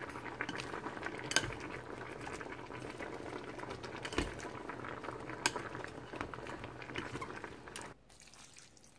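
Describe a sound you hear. Cabbage leaves sizzle and crackle in a hot pot.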